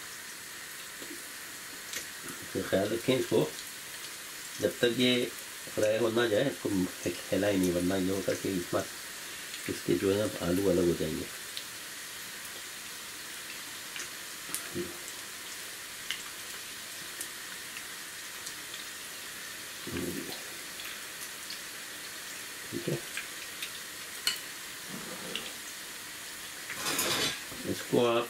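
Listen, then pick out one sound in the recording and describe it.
Oil sizzles and crackles steadily in a frying pan.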